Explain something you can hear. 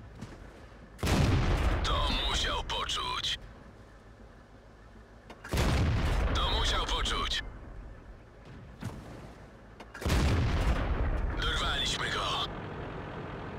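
A tank cannon fires three times, each blast booming and ringing out.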